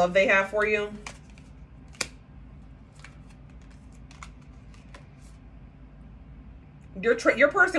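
Playing cards rustle and flick as they are shuffled by hand.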